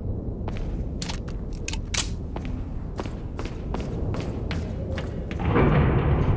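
Footsteps clack on stone.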